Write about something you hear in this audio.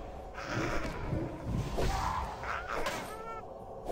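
Magic spells whoosh and crackle in bursts.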